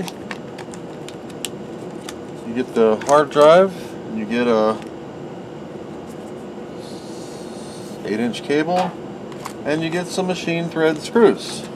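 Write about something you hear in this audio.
A plastic tray clicks and crinkles as it is pulled apart.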